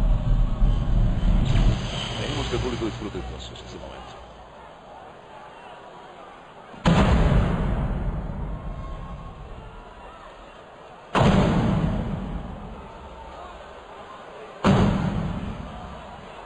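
A large crowd cheers and roars in a vast echoing arena.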